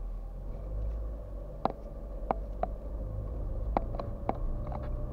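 A car engine rumbles low and steady while driving slowly.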